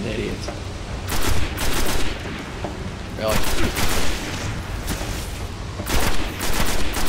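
A rifle fires bursts of rapid shots.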